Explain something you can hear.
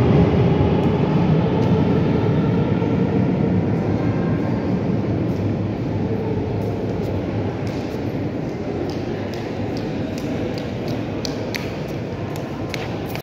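A subway train rumbles low through an echoing station and slowly fades away.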